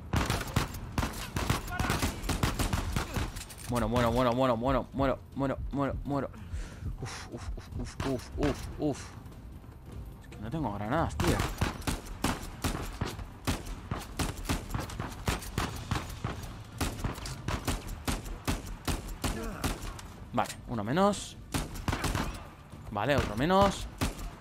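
Pistol shots ring out again and again in quick bursts.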